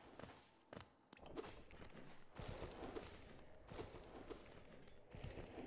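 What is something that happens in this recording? A sword slashes with sharp swishing strikes, again and again.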